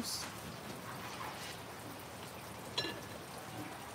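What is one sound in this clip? A metal lid clinks onto a pot.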